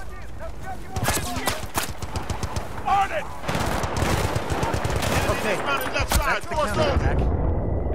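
Rapid gunfire crackles close by.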